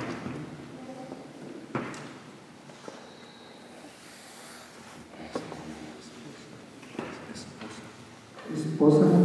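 An elderly man speaks quietly.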